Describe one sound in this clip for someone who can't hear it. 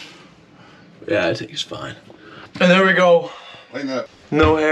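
A young man talks close up.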